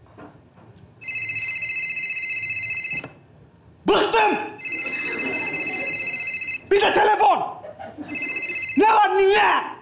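A phone rings loudly in repeated bursts.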